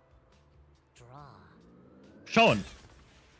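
A rocket whooshes through the air.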